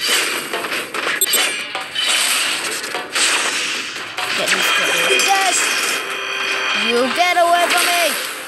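Energy blasts and weapon hits crackle and whoosh in a fast game fight.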